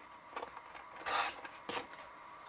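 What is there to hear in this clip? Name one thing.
A paper trimmer blade slides and slices through card.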